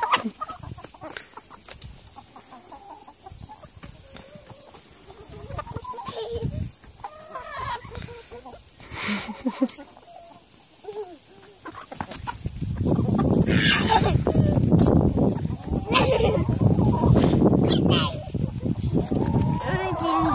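Hens cluck softly.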